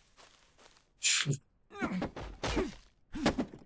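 An axe chops into a tree trunk.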